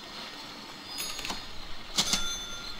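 Game interface clicks sound as a menu opens.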